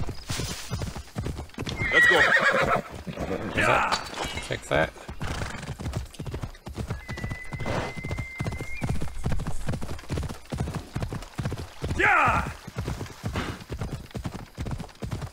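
Horse hooves thud steadily on dry ground.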